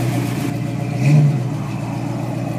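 A car engine revs up briefly and drops back.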